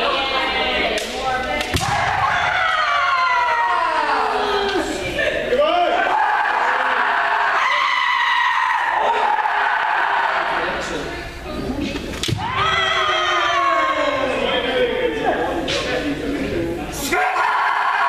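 Bamboo swords strike with sharp cracks.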